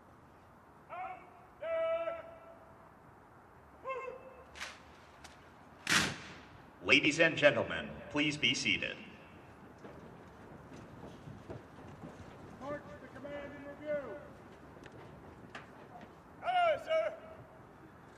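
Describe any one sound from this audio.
A man shouts military commands outdoors, his voice echoing.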